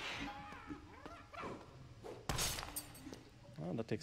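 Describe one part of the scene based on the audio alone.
A weapon strikes an armoured creature with a sharp hit.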